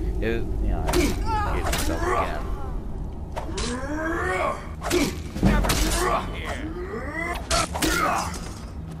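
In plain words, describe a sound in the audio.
Metal weapons clash and strike in quick blows.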